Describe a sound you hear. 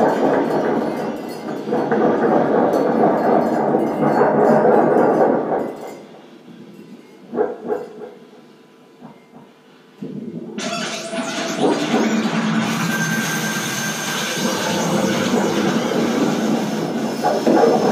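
A lap steel guitar plays drones and slides through an amplifier.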